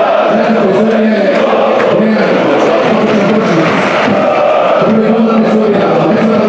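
A large stadium crowd sings and chants loudly together.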